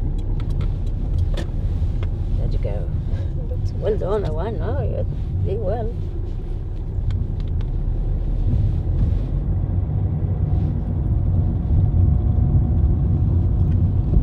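A car engine hums steadily while driving slowly.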